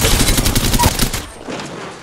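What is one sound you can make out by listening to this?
An electric charge crackles and zaps.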